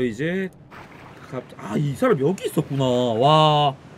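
Water splashes as someone swims.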